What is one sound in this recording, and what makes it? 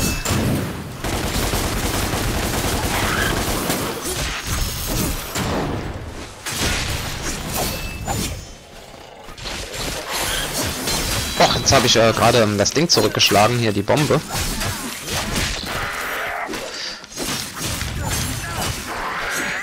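Sword slashes and impacts clash rapidly in a game fight.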